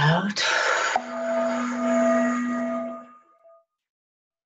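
A singing bowl rings with a steady hum.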